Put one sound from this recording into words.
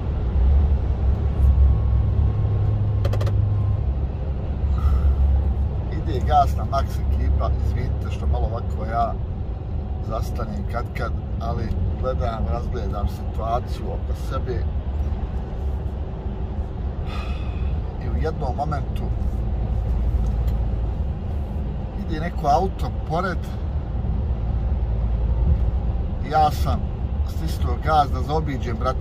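A truck engine rumbles steadily on a highway.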